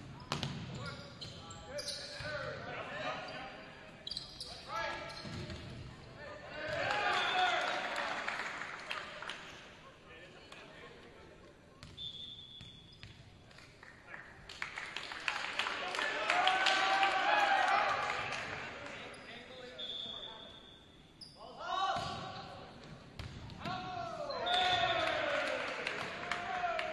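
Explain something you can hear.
A volleyball is struck with loud thumps.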